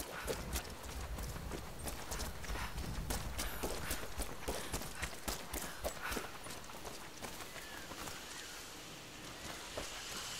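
Tall grass rustles against legs.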